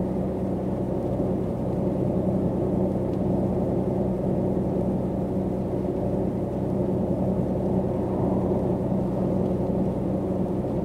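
Tyres roll on the road with a steady rumble.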